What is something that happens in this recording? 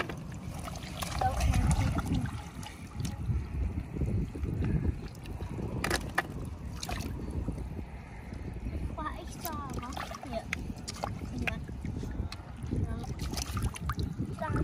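Shallow water splashes around hands and feet.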